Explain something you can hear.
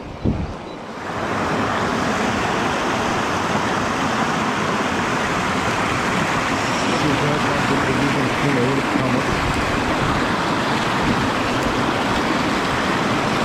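Whitewater rushes loudly over rocks.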